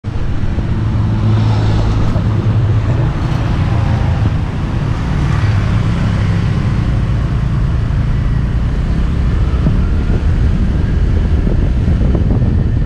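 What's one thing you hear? A scooter engine hums steadily close by.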